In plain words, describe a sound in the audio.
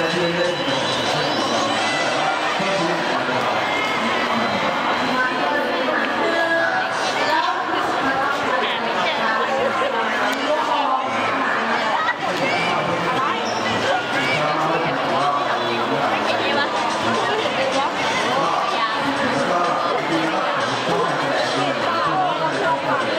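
A crowd of people murmurs and chatters all around.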